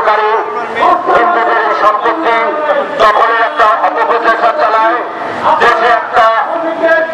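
An elderly man speaks loudly and steadily into a microphone.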